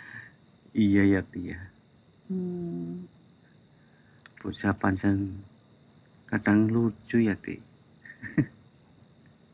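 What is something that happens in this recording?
A man speaks softly with amusement close by.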